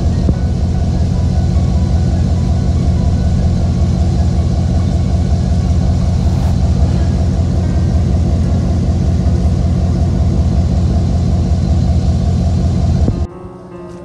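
A heavy vehicle's engine rumbles steadily nearby.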